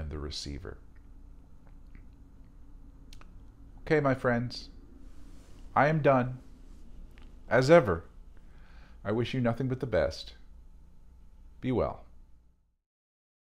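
A middle-aged man speaks calmly and slowly into a close microphone.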